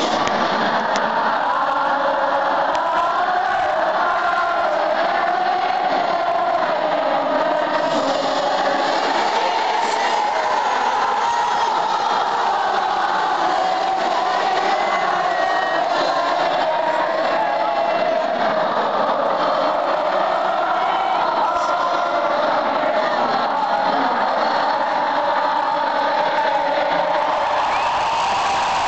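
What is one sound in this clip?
A large crowd screams and cheers in a huge echoing stadium.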